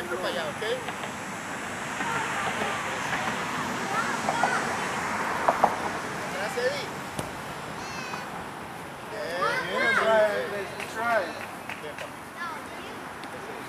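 Young children shout and call out outdoors.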